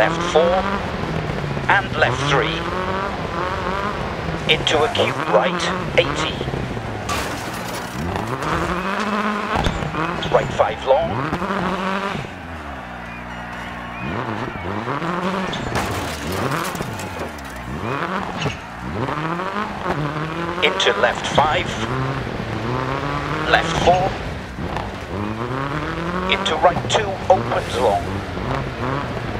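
A rally car engine revs hard, its pitch climbing and dropping through the gears.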